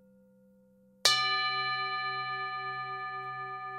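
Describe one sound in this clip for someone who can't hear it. A singing bowl is struck and rings out loudly, slowly fading.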